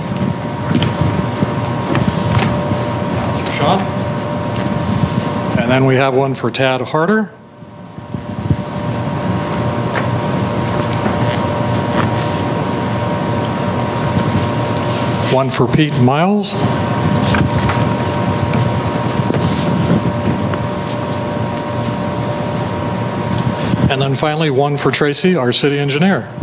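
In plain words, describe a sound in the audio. A man reads out through a microphone and loudspeakers in a large hall.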